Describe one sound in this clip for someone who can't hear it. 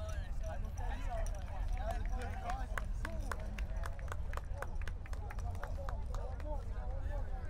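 A group of men clap their hands quickly.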